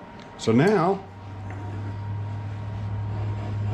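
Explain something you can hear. A lathe motor starts up and hums steadily.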